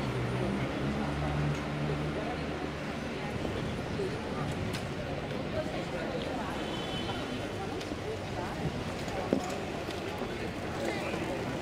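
Outdoor street noise murmurs steadily.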